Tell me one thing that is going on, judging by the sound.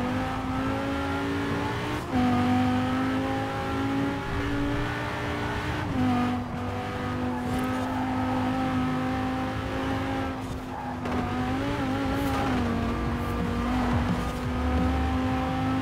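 A sports car engine roars at high revs, dropping in pitch as it shifts gears.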